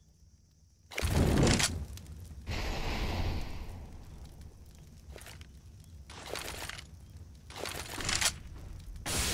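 Gunshots crack in short bursts nearby.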